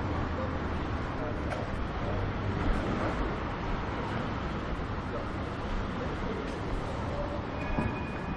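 Distant city traffic hums steadily outdoors.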